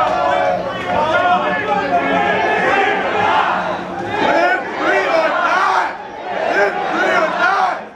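A large crowd of men and women chants in unison outdoors.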